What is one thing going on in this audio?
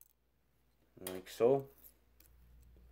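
A man speaks a few words briefly and calmly, close by.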